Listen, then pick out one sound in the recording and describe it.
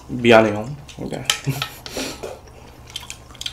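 A young man slurps soup from a bowl.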